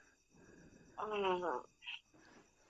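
A young woman speaks briefly over a phone line.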